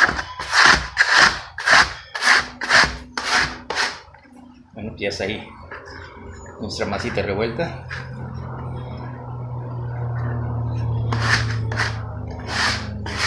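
Dough is rubbed and scraped on a board in quick, rhythmic strokes.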